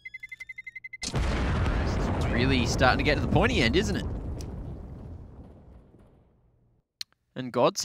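A bomb explodes with a loud boom that slowly fades away.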